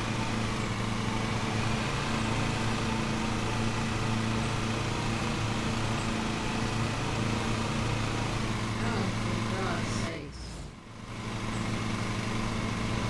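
A lawn mower engine drones steadily, briefly dropping away before picking up again.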